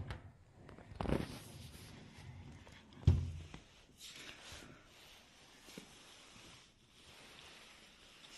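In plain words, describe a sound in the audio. A glass sliding door knocks and rattles in its frame.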